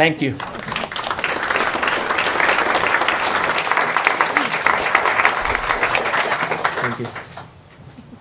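An audience claps and applauds in a room.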